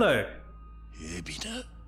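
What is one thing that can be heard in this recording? A man speaks in a low, serious voice close by.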